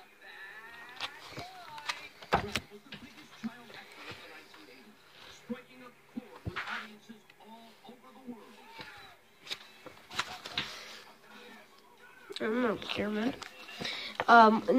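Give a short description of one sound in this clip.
Thumps and knocks come as a phone is handled.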